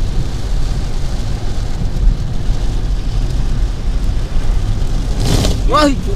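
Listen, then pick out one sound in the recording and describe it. Rain drums steadily on a car's windscreen and roof.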